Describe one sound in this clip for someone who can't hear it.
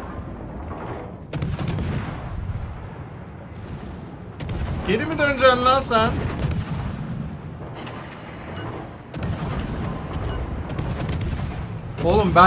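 Naval guns boom and shells splash into water.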